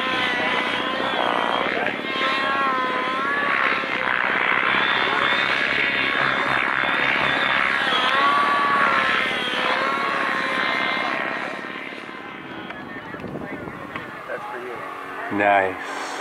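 A model airplane engine buzzes and whines overhead, rising and falling in pitch.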